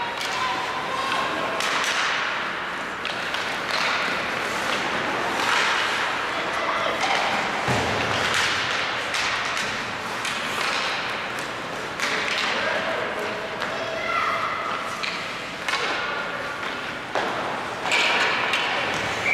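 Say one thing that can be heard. Skate blades scrape and hiss on ice in a large echoing arena.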